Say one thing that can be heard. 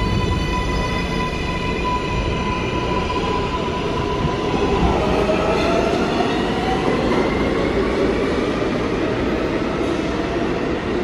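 A subway train's motors whine, the pitch sliding as the train speeds away.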